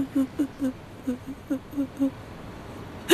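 A middle-aged woman sobs in short gasps close by.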